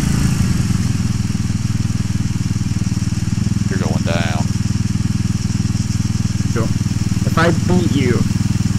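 A small kart engine idles with a steady, rattling buzz.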